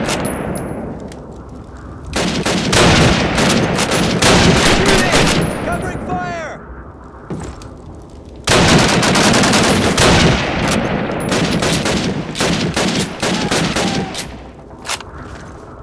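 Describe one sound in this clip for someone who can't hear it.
A bolt-action rifle is worked with metallic clicks.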